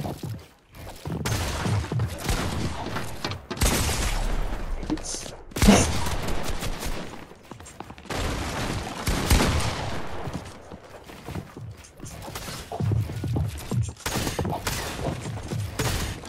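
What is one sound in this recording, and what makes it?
Game building pieces snap into place in quick succession.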